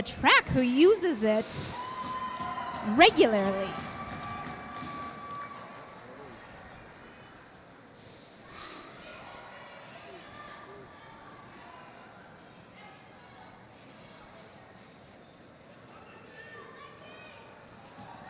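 Roller skate wheels rumble across a hard floor.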